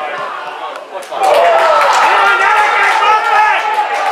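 A football is kicked hard.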